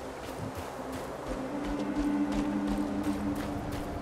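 Footsteps run quickly over rocky ground.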